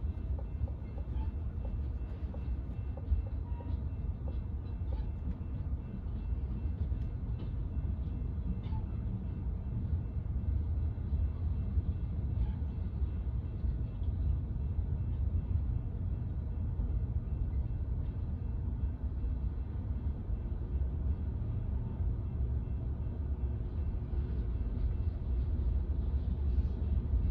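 A freight train rumbles steadily past, its wheels clacking on the rails.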